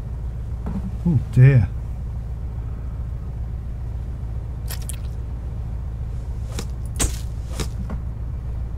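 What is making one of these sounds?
A large fish thumps down onto a deck.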